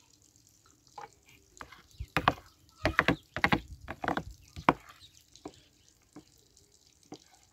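A spoon stirs and clinks in a plastic bowl.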